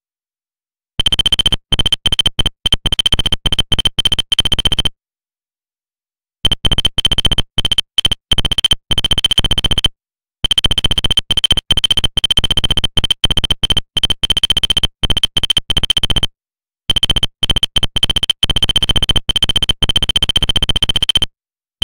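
Rapid electronic blips chatter in quick bursts.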